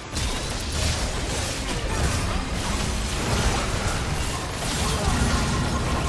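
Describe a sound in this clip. Weapons clash and hit over and over.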